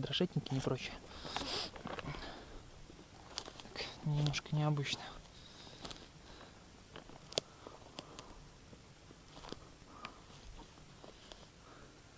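Footsteps crunch on dry twigs and forest litter.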